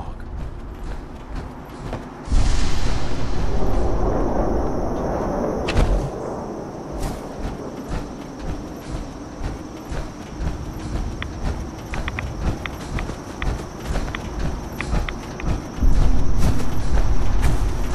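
Heavy metal footsteps thud steadily over the ground.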